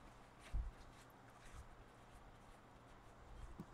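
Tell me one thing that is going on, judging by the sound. Paper rustles softly in a hand.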